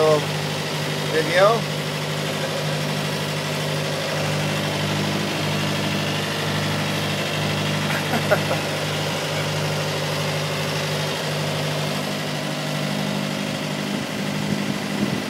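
Wind buffets across the open deck.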